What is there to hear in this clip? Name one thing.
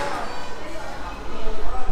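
A ticket gate beeps as a card is tapped on it.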